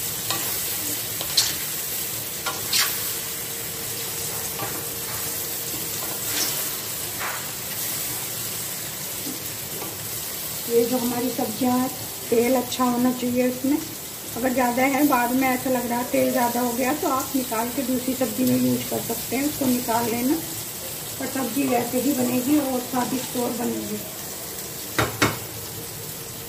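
A metal spatula scrapes and knocks against a metal pan.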